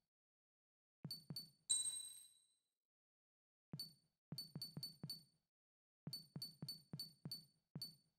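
Short electronic menu blips tick rapidly as a cursor moves through a list.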